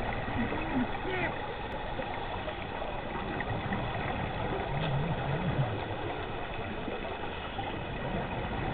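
A steady muffled rush of water is heard underwater.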